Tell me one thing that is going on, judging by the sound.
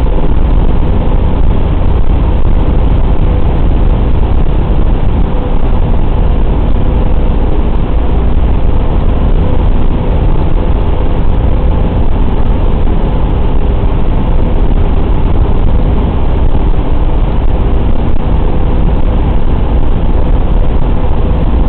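Wind roars past an open waist window of a flying bomber.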